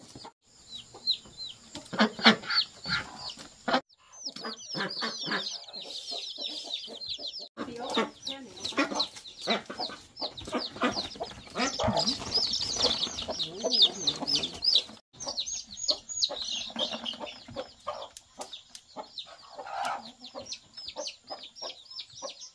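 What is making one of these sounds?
Chicks peep high and fast.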